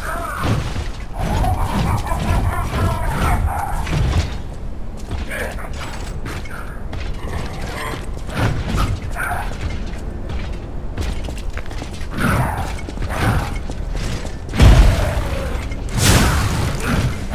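Heavy metal blows clang and thud in a fight.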